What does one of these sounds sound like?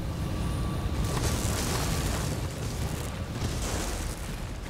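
Magic fire blasts whoosh and crackle.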